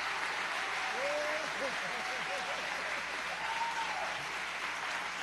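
Audience members cheer and whistle.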